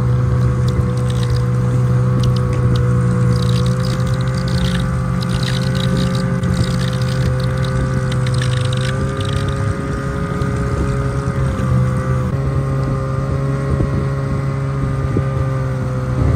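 A snowmobile engine drones steadily at close range.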